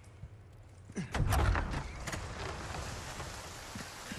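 A heavy wooden door creaks open with a loud thud.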